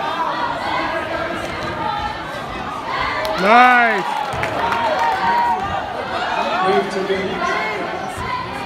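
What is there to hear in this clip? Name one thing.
A crowd of spectators talks and cheers loudly in an echoing gym.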